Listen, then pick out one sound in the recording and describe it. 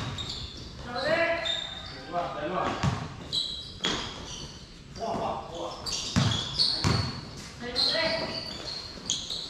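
Young men shout and call out to each other from across the court.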